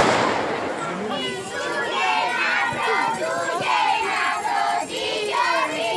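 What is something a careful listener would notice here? A crowd of men and women talk and call out together nearby.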